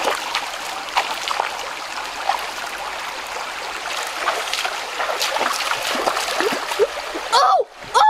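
A stream trickles and splashes over rocks.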